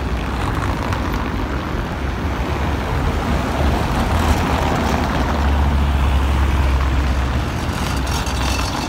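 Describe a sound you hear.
Cars drive past close by.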